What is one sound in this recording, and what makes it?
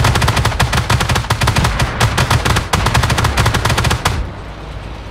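A helicopter's rotor chops loudly and rapidly close by.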